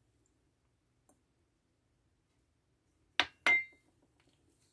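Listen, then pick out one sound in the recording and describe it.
A spoon scrapes in a bowl.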